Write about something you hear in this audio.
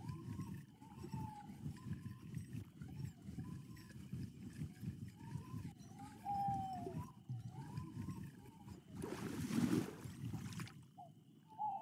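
A fishing reel whirs steadily as line is wound in.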